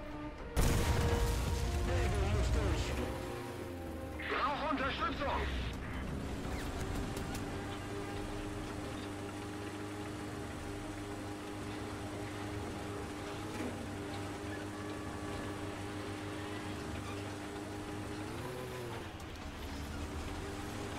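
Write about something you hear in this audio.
A tank engine rumbles and whines steadily.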